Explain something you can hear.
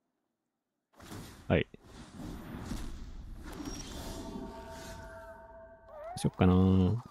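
Magical game sound effects swirl and chime.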